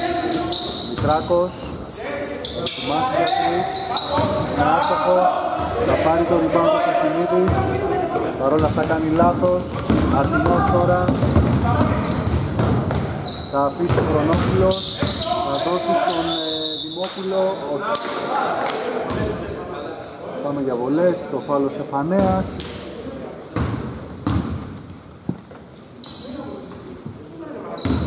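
Basketball players shout and call to each other in a large echoing hall.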